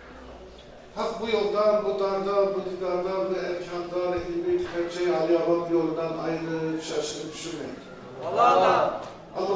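A group of young men and women sing together loudly.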